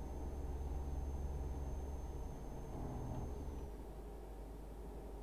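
A truck engine hums steadily at low revs.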